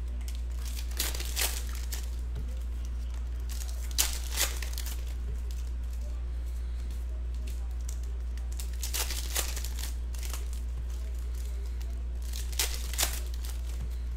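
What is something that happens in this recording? Plastic card wrappers crinkle and rustle in someone's hands, in short bursts.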